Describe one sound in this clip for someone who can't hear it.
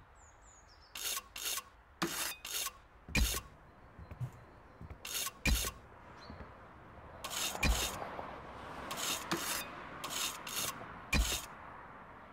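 A trowel scrapes and taps mortar onto bricks.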